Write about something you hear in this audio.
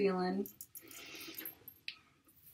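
Hands rustle through wet hair.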